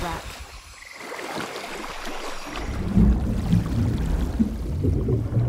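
Water splashes and sloshes around a swimmer.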